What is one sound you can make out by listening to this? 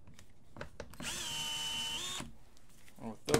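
An electric screwdriver whirs steadily for a moment.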